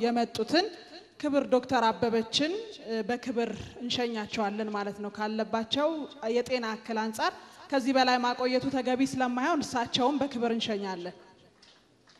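A young woman speaks calmly into a microphone over a loudspeaker.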